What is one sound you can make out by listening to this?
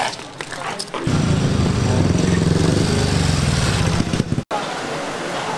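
A motorcycle engine roars close by.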